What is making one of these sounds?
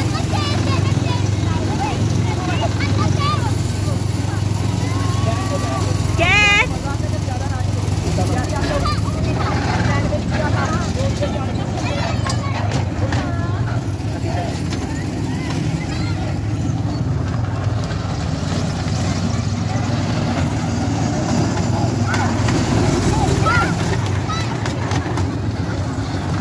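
A small ride train rumbles steadily along its track.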